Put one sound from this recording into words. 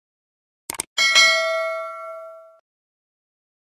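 A bell chimes and rings out.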